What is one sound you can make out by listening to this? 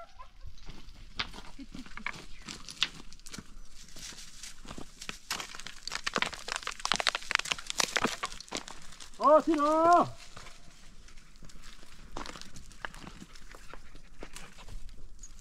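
Footsteps crunch on dry, stony ground.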